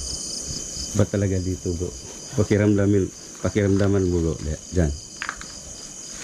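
A man speaks nearby in a calm voice.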